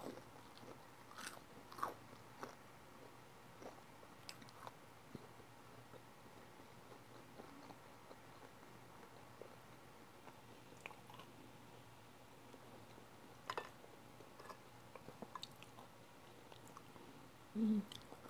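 A young woman chews softly and smacks her lips close to a microphone.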